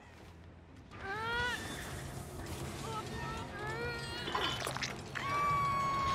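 A man screams in pain.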